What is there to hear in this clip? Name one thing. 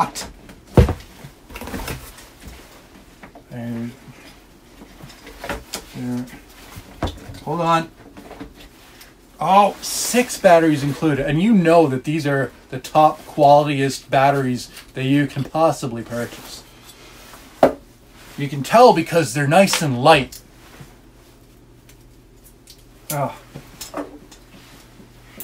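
Cardboard rustles and scrapes as a box is rummaged through.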